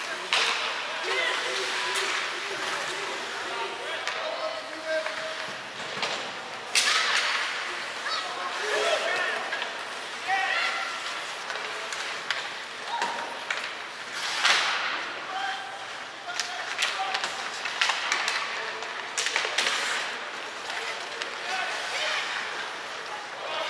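Players shout to each other on the ice.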